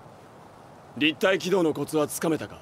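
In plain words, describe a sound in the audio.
A young man asks a question in a firm voice.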